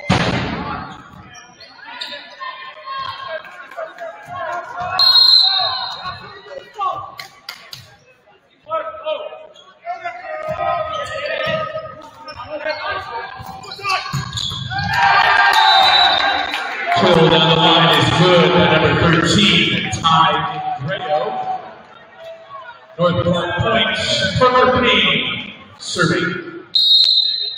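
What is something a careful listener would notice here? A volleyball is struck with a hard slap.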